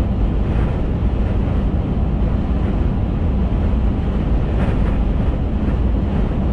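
Tyres roll steadily over a highway.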